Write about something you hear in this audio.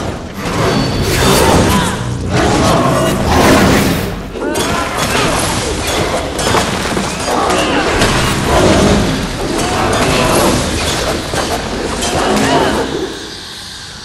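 Weapons clash and slash in a fierce fight.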